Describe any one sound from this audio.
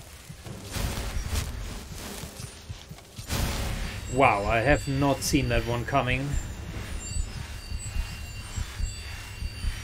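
A magic spell crackles and hums with a shimmering whoosh.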